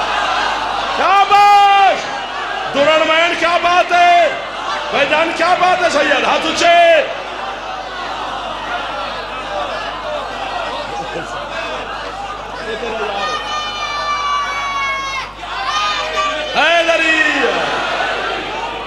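A large crowd of men chants loudly together in rhythmic bursts.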